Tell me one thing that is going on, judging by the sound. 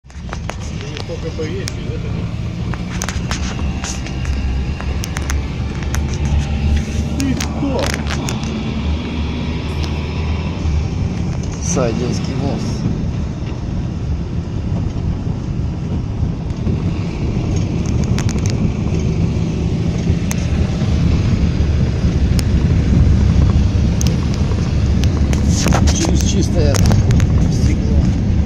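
Tyres crunch and rumble over packed snow.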